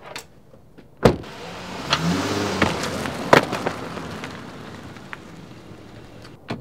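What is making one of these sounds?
A car engine starts and the car drives away.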